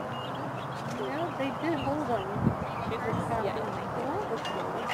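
A man talks calmly at a distance outdoors.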